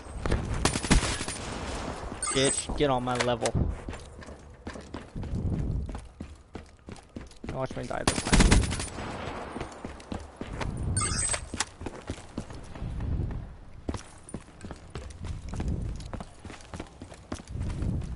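Gunfire crackles in quick bursts.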